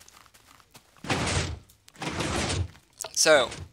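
Footsteps crunch over grass and stone.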